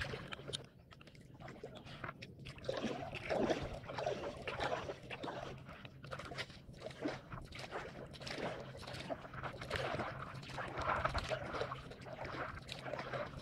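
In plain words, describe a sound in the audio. A paddle splashes rhythmically through water.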